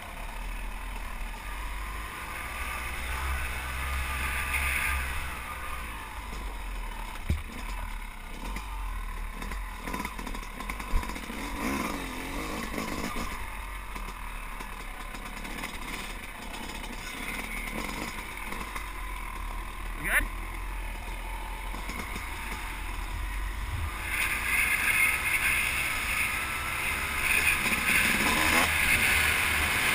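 A dirt bike engine drones steadily up close, rising and falling as it rides.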